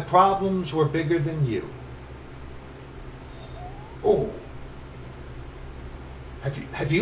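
A middle-aged man speaks in short bursts, close to a computer microphone.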